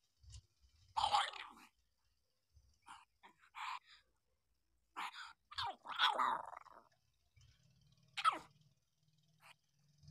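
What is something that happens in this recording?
Newborn puppies whimper and squeak softly.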